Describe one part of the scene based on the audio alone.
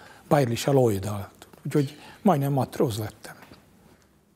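An elderly man speaks calmly and close up.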